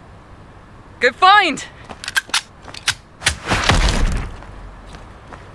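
Video game gunfire cracks in quick bursts.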